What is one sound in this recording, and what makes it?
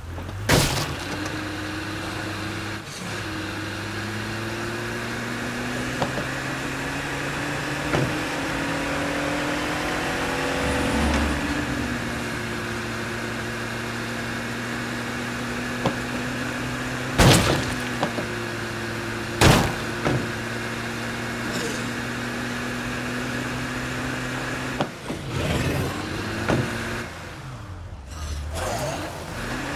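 Car tyres rumble on asphalt.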